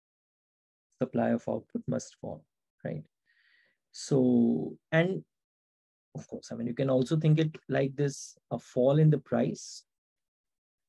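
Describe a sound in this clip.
A man speaks calmly and clearly into a close microphone, explaining at a steady pace.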